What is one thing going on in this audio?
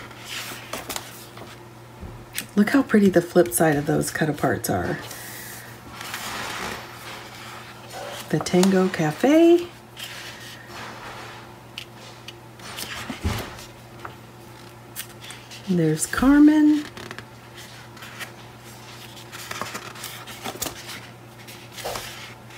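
Stiff paper pages flip and rustle.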